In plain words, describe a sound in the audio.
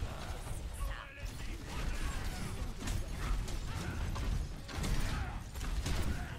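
Game explosions boom.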